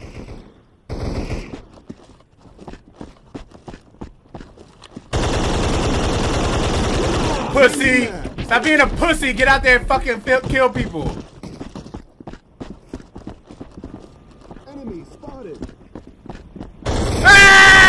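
Gunshots crack rapidly in a video game.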